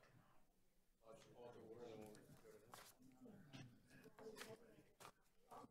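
Young people murmur quietly nearby.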